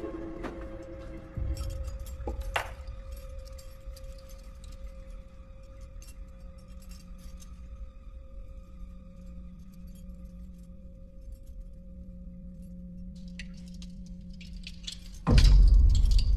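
A small metal bell rings with a long, steady hum that stops suddenly.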